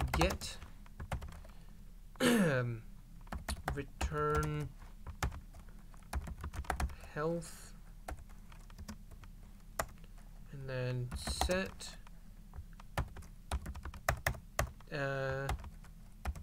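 Keyboard keys click in quick, uneven bursts of typing.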